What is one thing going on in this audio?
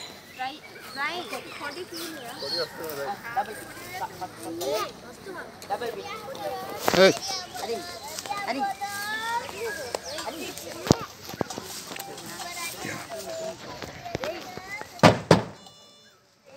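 Many children chatter and call out outdoors.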